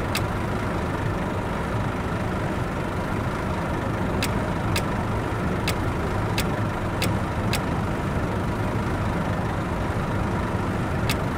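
A bus engine idles with a steady low rumble.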